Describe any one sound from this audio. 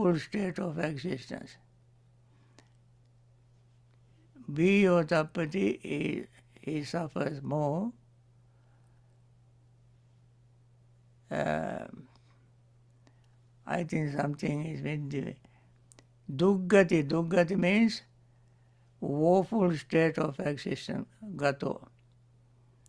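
A man speaks calmly and slowly into a close microphone, pausing between phrases.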